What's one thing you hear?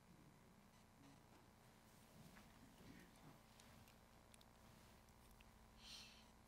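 An elderly man speaks calmly and quietly through a microphone.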